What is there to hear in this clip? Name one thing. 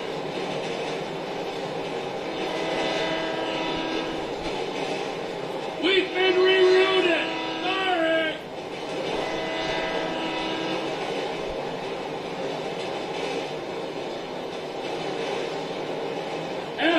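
A train engine hums and rumbles steadily as wheels roll along the tracks.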